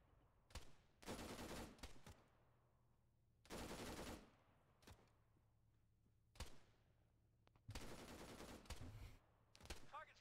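Rifle shots crack in bursts, echoing across open ground.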